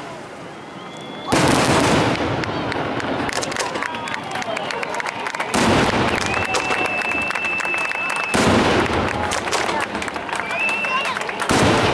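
Fireworks crackle and pop loudly.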